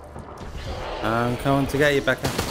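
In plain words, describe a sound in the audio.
A man speaks with animation into a microphone, close by.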